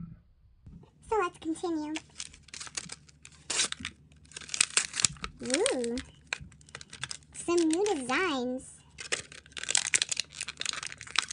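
A plastic wrapper crinkles and crackles as it is opened.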